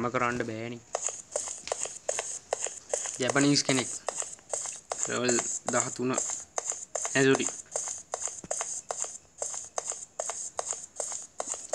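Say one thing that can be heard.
A game character's footsteps patter quickly and steadily as the character runs.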